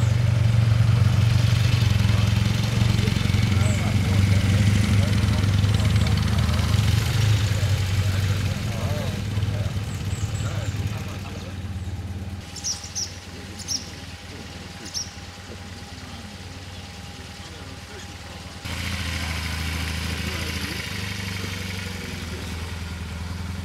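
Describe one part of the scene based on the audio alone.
A motorcycle engine rumbles close by as the bike rides slowly past.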